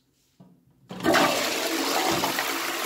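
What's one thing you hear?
A toilet flushes with a loud rush of water.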